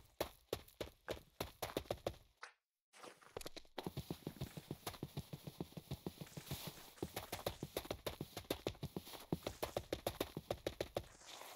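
Quick footsteps patter steadily across grass and dirt.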